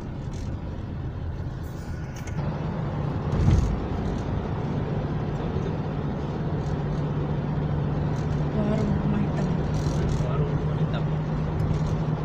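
Tyres roll on a paved road with a low rumble.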